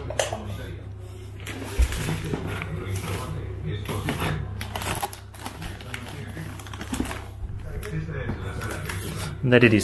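Things rustle and bump close by as they are handled.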